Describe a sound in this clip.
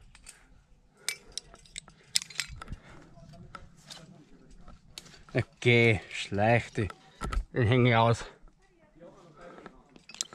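A metal carabiner clicks and clinks against rock.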